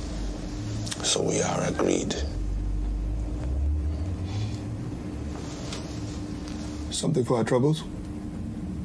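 A man speaks in a low, quiet voice up close.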